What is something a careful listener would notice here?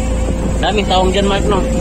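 Small waves lap against a kayak.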